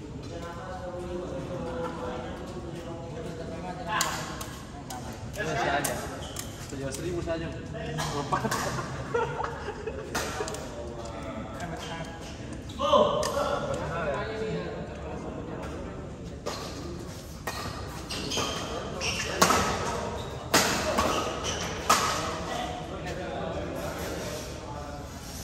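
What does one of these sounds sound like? Badminton rackets strike a shuttlecock in a rally, in a large echoing hall.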